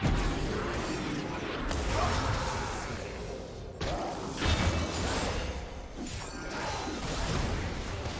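Magic spells crackle and burst in a hectic fantasy battle.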